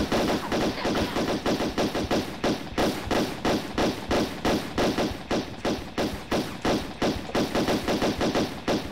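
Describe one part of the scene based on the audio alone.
Pistols fire in a fast, steady rhythm.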